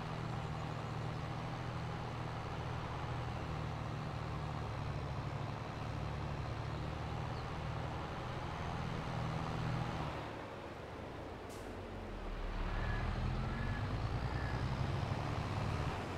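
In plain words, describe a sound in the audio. A tractor engine hums steadily, dropping briefly and then rising again.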